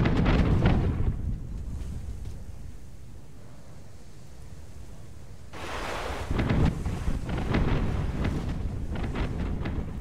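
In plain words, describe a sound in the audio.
Cannons fire with heavy booms.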